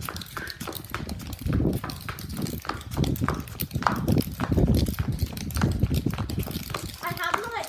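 A plastic skipping toy rattles and scrapes rhythmically across concrete.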